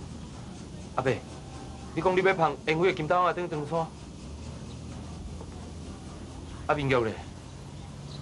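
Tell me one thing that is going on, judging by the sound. A young man speaks with surprise, close by.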